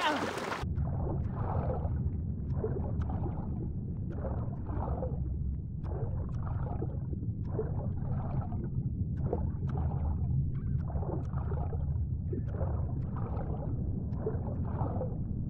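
Water swishes and bubbles in regular strokes as a swimmer moves underwater.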